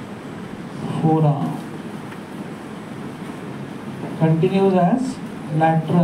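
A man speaks in a lecturing tone.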